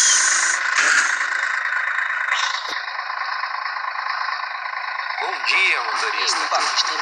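A bus engine idles with a steady hum.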